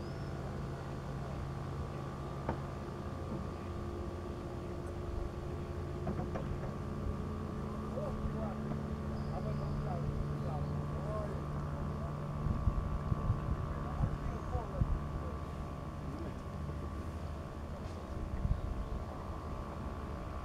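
Small waves lap gently against the shore.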